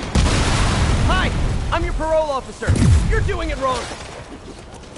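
A police siren wails close by.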